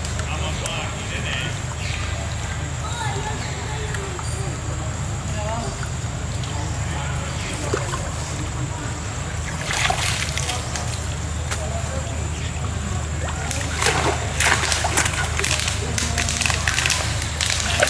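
Water splashes as a small monkey wades and swims.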